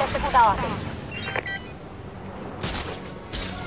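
Wind rushes past a gliding cape.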